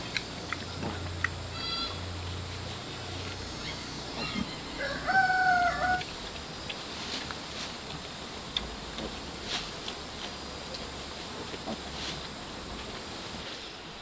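A pig munches and crunches on leafy greens.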